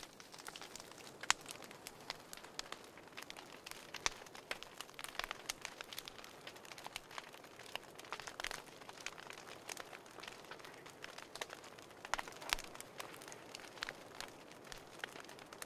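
Fire crackles and pops.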